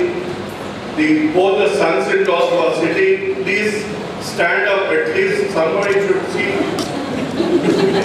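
A man speaks into a microphone over a loudspeaker.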